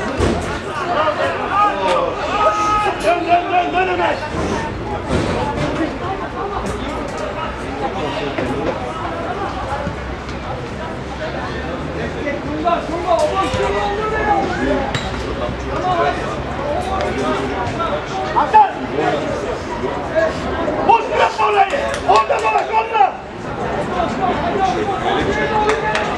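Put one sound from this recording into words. Young men shout to each other in the distance outdoors.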